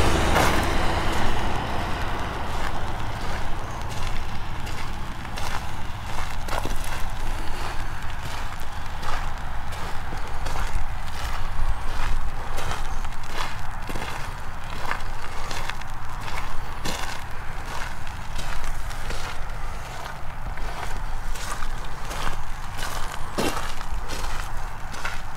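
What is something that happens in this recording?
Footsteps crunch steadily on a gravel roadside.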